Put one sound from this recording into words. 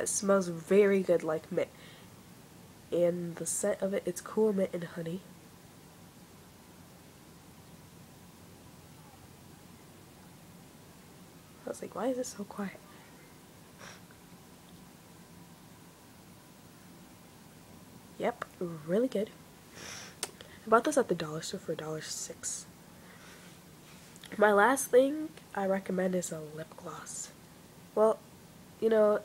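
A young woman talks calmly and close by, in bursts with pauses.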